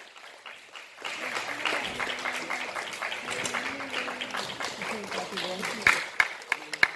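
A group of young performers chants together in a large echoing hall.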